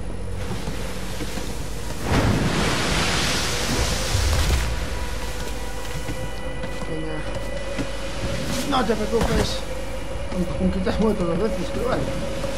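Hands scrape and knock on wooden logs while climbing.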